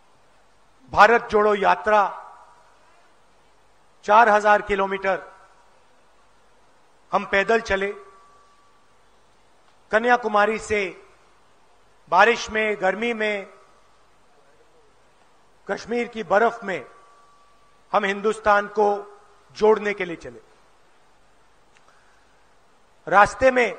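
A middle-aged man speaks through a microphone and loudspeakers in short, emphatic phrases with long pauses.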